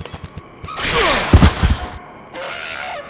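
An electric weapon blast crackles in a video game.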